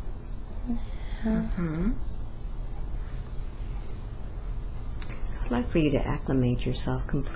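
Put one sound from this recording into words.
A woman groans and whimpers in discomfort close to a microphone.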